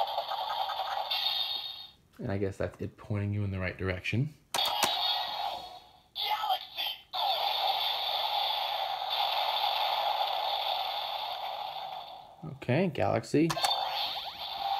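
A toy blaster plays loud electronic sound effects through a small tinny speaker.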